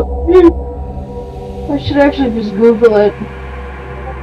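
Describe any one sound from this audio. A young woman speaks playfully into a microphone.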